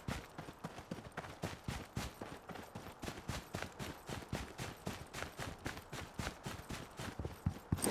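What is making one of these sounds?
Footsteps run quickly and steadily on grass.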